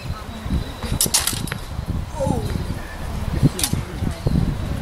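Steel swords clash with sharp ringing clicks.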